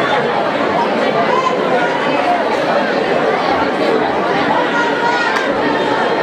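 A large crowd of children chatters loudly in an echoing hall.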